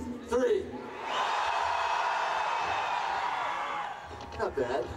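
A large outdoor crowd cheers and roars.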